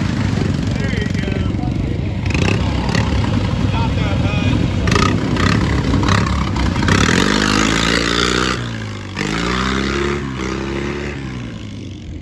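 Tyres churn and splash through wet mud.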